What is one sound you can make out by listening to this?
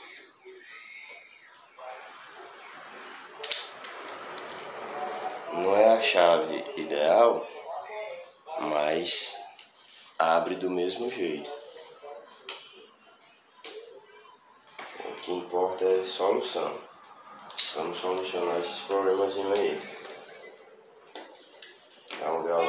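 Metal tools click and clank against a bicycle part.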